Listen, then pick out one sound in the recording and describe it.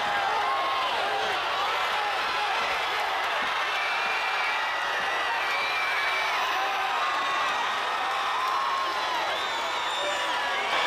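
People in a crowd whistle with high, sliding whistles.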